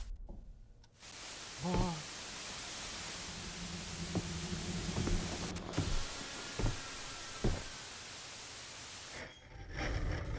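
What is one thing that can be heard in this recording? A television hisses with loud static.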